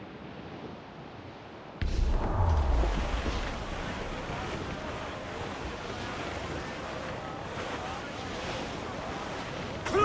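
Water splashes and rushes against a sailing ship's hull.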